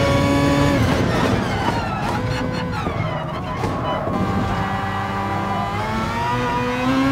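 A racing car engine winds down while braking, then climbs again.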